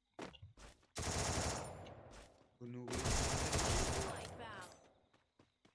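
A rifle fires rapid bursts of shots close by.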